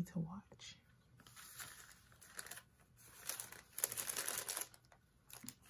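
Hands rustle and crinkle a stack of paper receipts.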